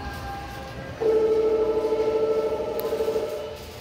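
A shopping cart rolls and rattles nearby.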